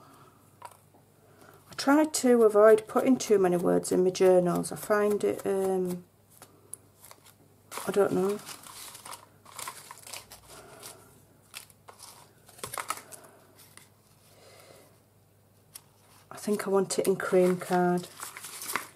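Paper pieces rustle and shuffle as they are handled.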